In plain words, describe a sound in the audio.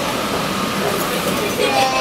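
A metro train hums as it pulls away.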